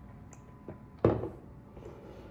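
A plastic cup knocks down onto a wooden table.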